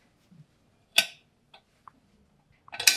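A door latch clicks as a door opens.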